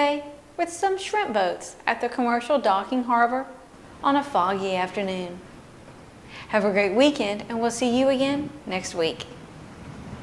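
A young woman speaks clearly and calmly into a close microphone.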